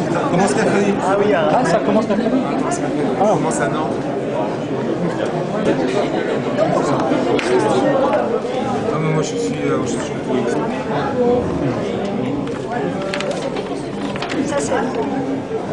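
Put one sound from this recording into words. A middle-aged man talks with animation, close by.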